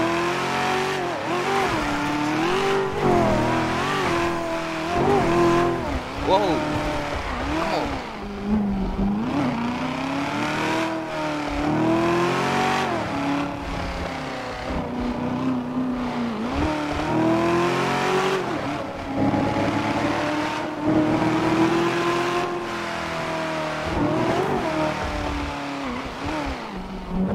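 A sports car engine roars and revs up and down as the car speeds along.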